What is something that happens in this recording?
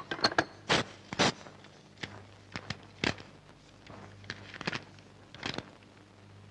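Paper crinkles and rustles as it is unfolded.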